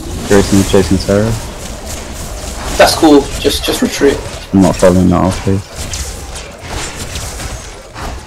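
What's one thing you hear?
Energy blasts crackle and boom in a fight.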